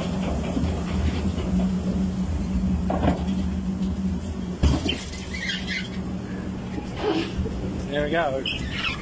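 A fairground ride's motor hums steadily, then stops.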